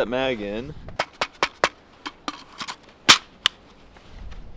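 Metal parts of a rifle click and clack as they are handled.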